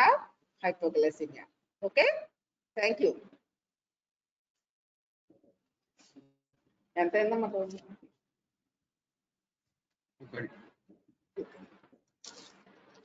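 A woman speaks calmly through a microphone on an online call.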